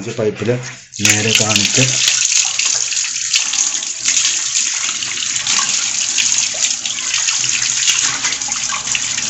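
Water runs from a tap and splashes onto a fish.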